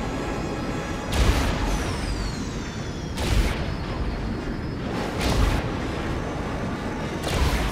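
Spacecraft engines roar steadily, surging loudly every couple of seconds.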